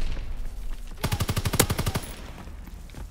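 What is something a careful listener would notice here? A machine gun fires a rapid burst close by.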